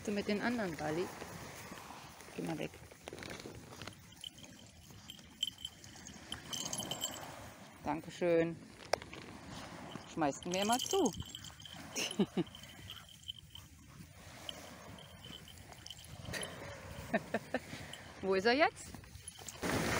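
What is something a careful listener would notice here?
Dogs whine and yelp playfully.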